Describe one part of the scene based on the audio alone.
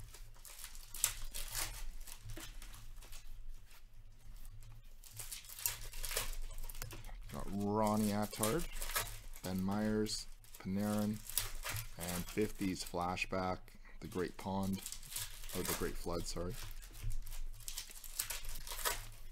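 Trading cards flick and rustle as they are shuffled by hand close by.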